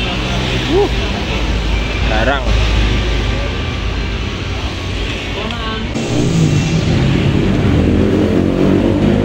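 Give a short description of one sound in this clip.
Metal parts clink as a scooter is worked on.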